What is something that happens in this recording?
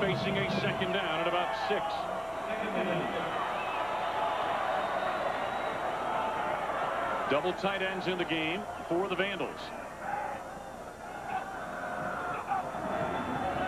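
A large stadium crowd murmurs and cheers in the open air.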